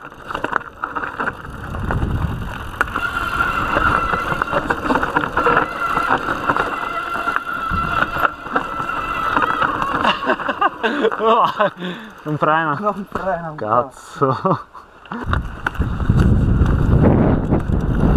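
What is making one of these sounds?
Bike tyres crunch and rattle over a dirt trail.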